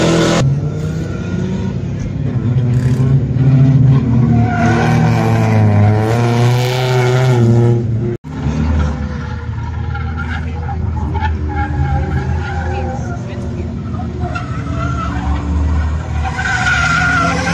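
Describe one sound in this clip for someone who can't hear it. Tyres squeal on asphalt as a car drifts.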